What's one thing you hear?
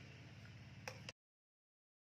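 A metal ladle clinks against a pot.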